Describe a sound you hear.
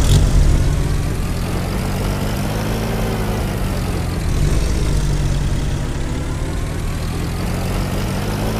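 A jeep engine rumbles steadily as it drives.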